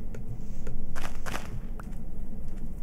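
Leaves crunch as a block is broken apart.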